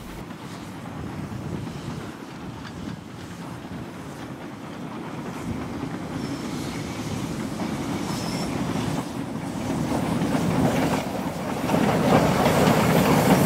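A train rumbles along the tracks, growing steadily louder as it draws closer.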